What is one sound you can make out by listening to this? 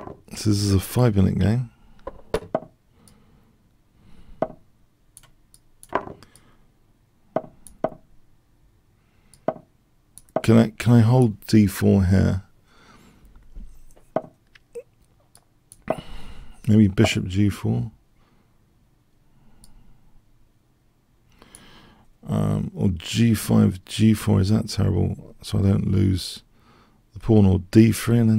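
An older man talks calmly into a close microphone, in bursts with pauses.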